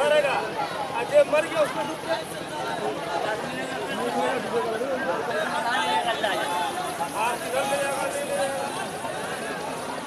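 Several men shout excitedly across open water.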